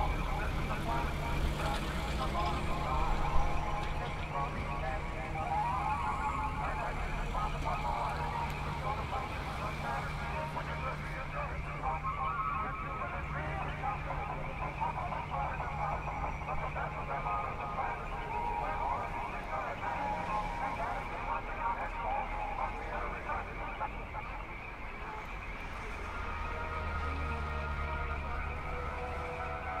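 Lively music plays steadily.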